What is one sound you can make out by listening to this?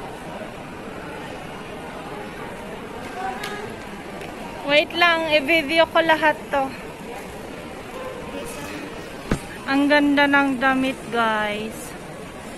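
A low murmur of shoppers fills a large echoing hall.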